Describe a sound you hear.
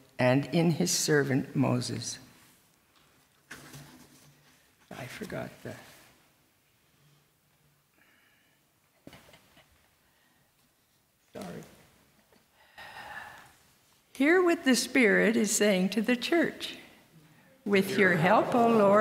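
An older woman speaks calmly into a microphone in a large echoing room, with pauses.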